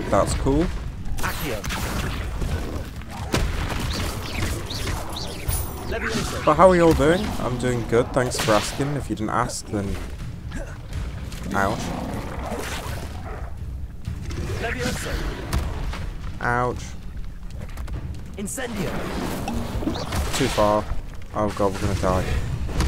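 Magic spells crackle and burst in quick bursts.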